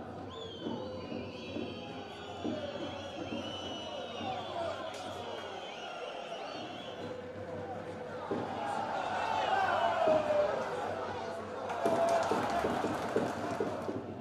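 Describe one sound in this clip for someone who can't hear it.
A crowd murmurs and cheers in a large open stadium.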